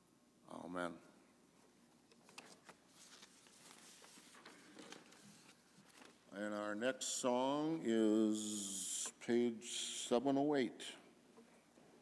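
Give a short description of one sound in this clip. An elderly man speaks into a microphone in a large echoing room.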